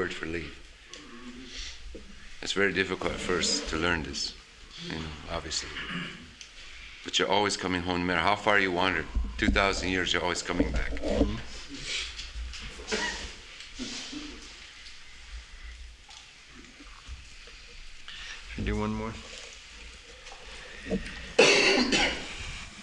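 A man speaks calmly, close up.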